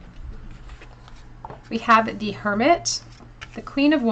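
A card is laid down softly on a cloth.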